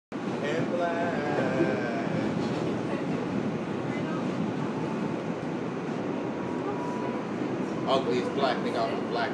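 A train rumbles and rattles steadily.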